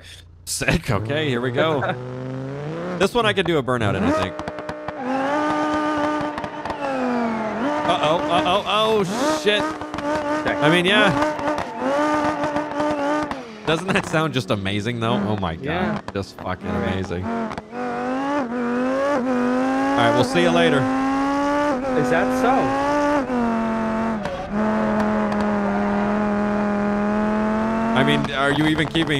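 A car engine revs up and down loudly, rising in pitch as it speeds up.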